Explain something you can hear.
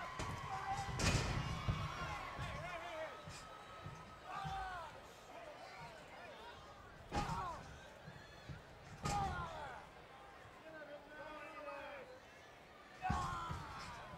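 Bodies slam heavily onto a wrestling ring mat with loud thuds.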